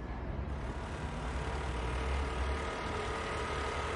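A scooter engine hums as it rides past.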